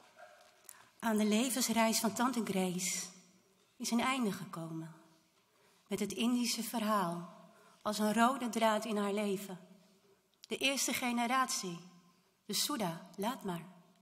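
A woman speaks calmly into a microphone, heard through loudspeakers in a large, echoing hall.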